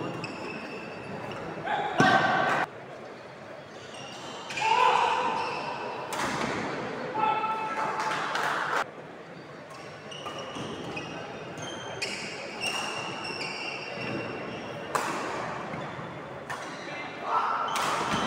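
Shoes squeak on a wooden court.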